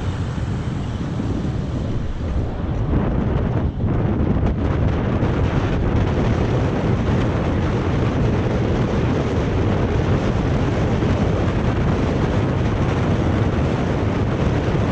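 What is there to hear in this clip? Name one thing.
Strong wind buffets a microphone on a fast-moving bicycle.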